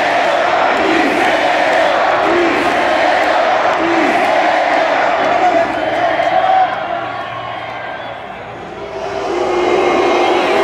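A large crowd cheers and chants loudly in a big echoing arena.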